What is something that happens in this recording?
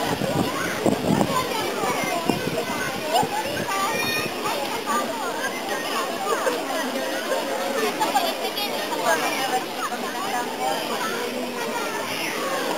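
Swimmers splash in the water.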